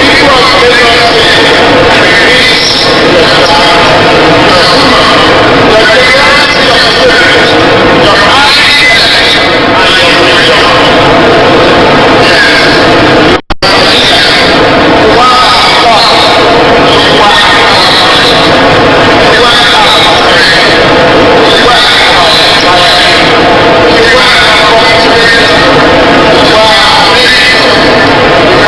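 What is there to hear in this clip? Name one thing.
A man reads out a speech through a microphone and loudspeakers.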